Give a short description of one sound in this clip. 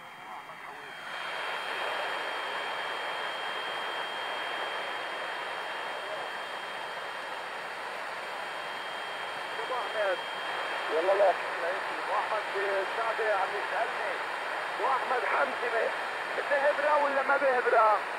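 A portable shortwave radio hisses with static.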